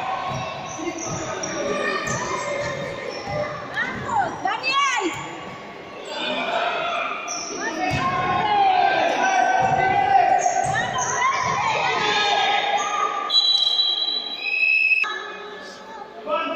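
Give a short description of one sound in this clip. Children shout and call out loudly in a large echoing hall.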